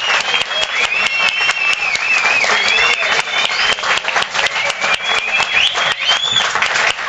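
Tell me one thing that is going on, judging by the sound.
Hands clap rapidly in applause.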